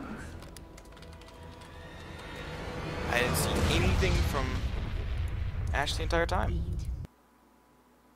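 Magical blasts and zaps crackle in a fast fight.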